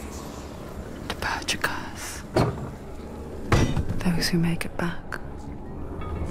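A heavy wooden gate creaks and thuds as it is pushed open.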